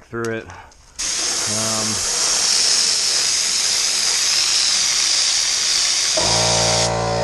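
A spray gun hisses loudly and steadily.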